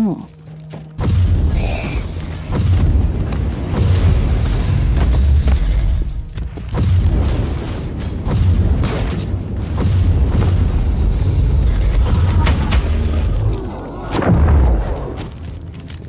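Deep explosions boom and rumble loudly.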